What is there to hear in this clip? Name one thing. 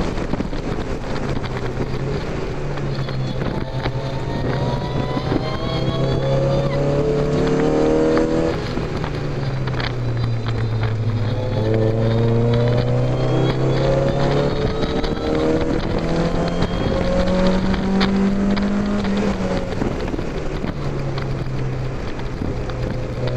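A car engine roars loudly, rising and falling in pitch as the gears change.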